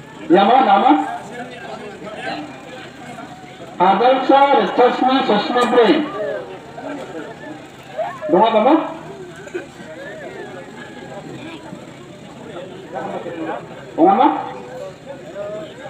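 A man speaks loudly nearby in short bursts, like an announcer.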